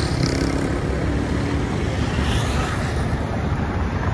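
A motorcycle rides past.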